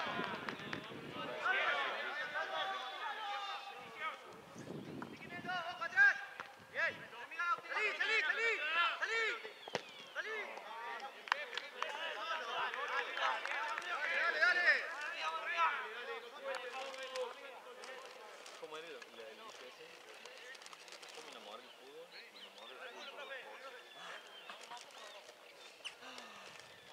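Young men shout and call out to each other outdoors, some way off.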